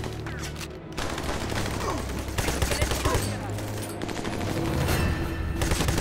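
Rifle gunfire rattles in short bursts.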